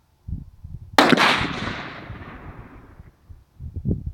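A .22-250 rifle fires a single sharp shot outdoors, echoing across open ground.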